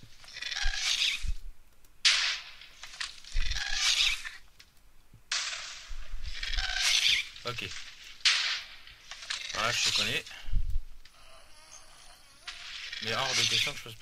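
Lava bubbles and pops nearby.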